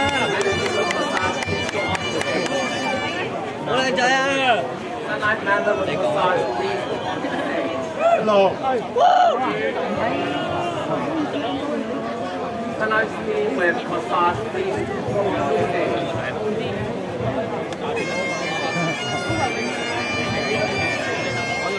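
A man speaks loudly through a microphone over a loudspeaker.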